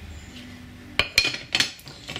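A glass lid clinks onto a glass bowl.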